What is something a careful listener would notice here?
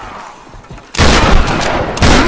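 A rifle fires loudly.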